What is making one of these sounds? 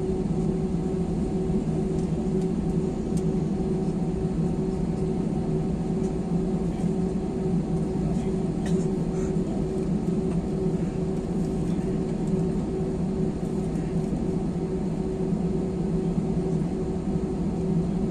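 Jet engines of an airliner drone as it rolls along the runway, heard from inside the cabin.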